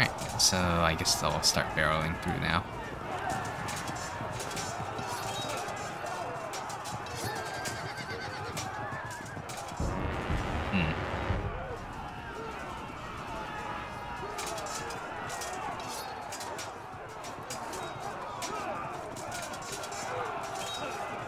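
Swords and weapons clash and clatter in a large battle.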